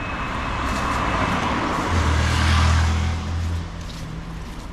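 A car drives past close by and fades away.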